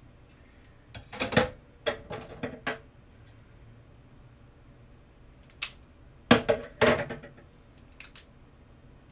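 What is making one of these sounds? Small plastic items click and rustle close by.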